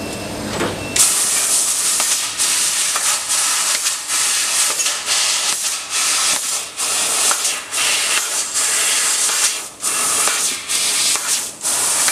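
A cutting machine hisses loudly in short bursts as it cuts metal.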